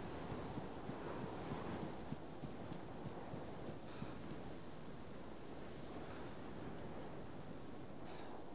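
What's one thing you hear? Footsteps swish through tall grass at a steady walking pace.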